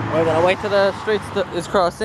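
A car drives past close by.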